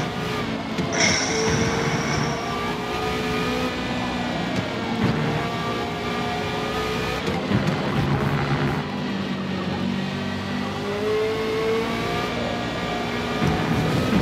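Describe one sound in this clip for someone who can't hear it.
A race car engine roars loudly, its pitch rising and falling as it shifts gears.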